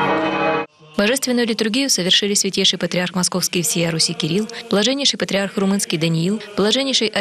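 A man chants a prayer loudly over a loudspeaker, outdoors.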